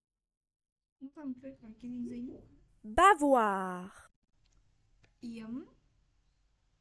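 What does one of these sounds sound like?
A young boy repeats words aloud, speaking close to a microphone.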